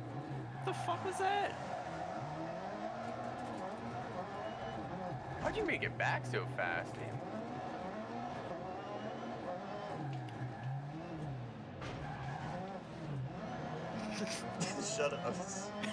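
A race car engine revs up and down as gears shift.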